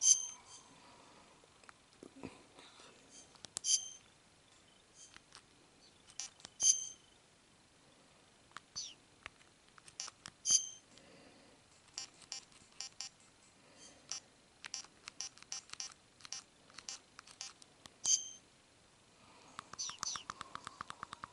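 Buttons on a handheld game console click softly.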